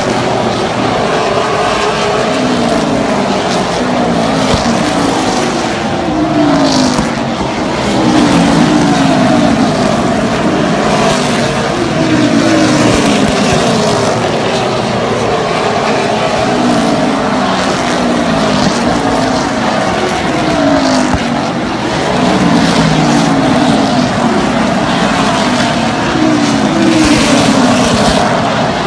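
Race car engines roar loudly as the cars speed past, their pitch rising and falling with each pass.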